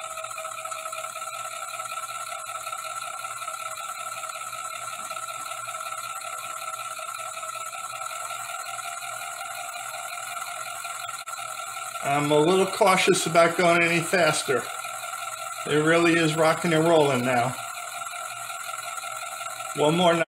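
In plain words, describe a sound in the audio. A small motor whirs steadily as a bowl spins round and round.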